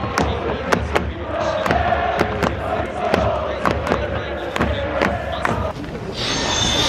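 A large crowd chants and sings in unison in an open stadium.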